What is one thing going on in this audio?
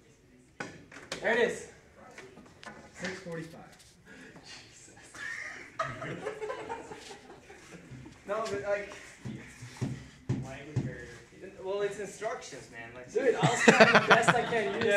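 Young men talk and laugh loudly nearby.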